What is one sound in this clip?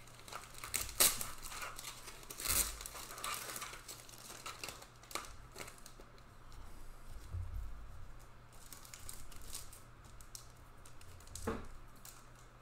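A hard plastic card case clicks and taps as it is handled.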